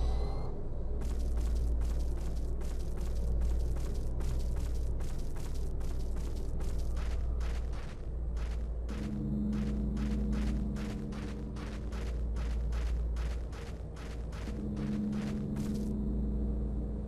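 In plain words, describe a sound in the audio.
Footsteps tap quickly and evenly on a hard floor.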